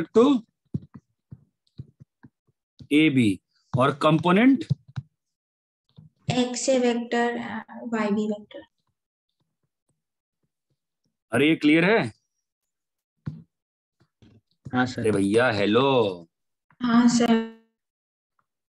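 A man explains in short bursts with pauses, speaking close to a microphone.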